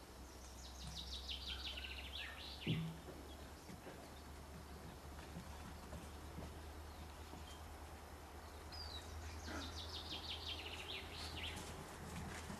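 Cocker spaniel puppies scamper across wooden boards.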